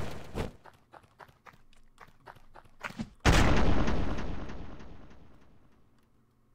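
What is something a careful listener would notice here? Sharp blows and impacts land in quick succession, ending in a loud crash.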